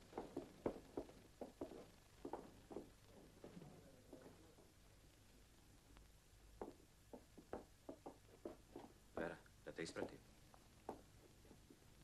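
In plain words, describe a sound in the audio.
Footsteps and wooden desks knock and clatter.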